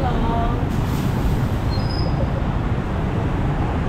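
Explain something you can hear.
A truck engine rumbles past.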